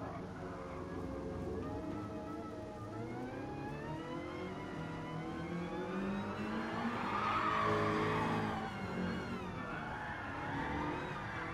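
A car engine roars steadily, its pitch climbing as it revs up and dropping as it shifts gears.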